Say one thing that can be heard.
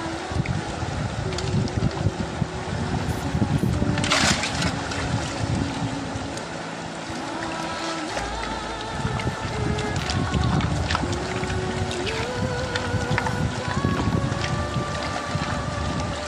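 Water sloshes and splashes in a wide pan swirled in a river.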